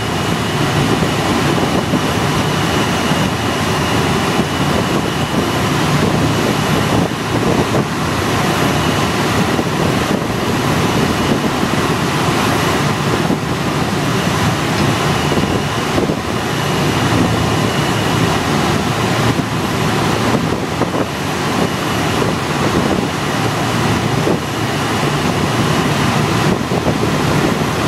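Wind rushes past the plane in flight.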